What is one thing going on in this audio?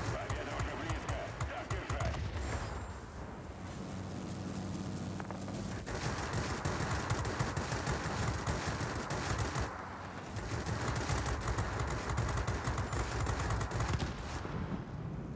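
Machine guns fire in rapid bursts.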